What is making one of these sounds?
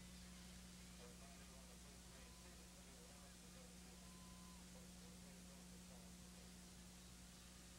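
Young men call out faintly in the distance outdoors.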